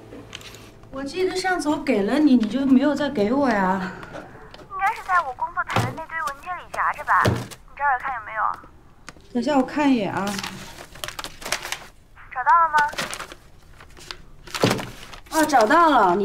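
A young woman talks into a phone in a calm, chatty voice.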